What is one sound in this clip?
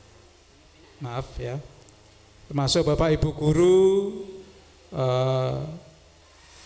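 An elderly man speaks into a microphone through a loudspeaker.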